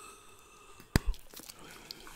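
A bubble gum bubble pops sharply close to a microphone.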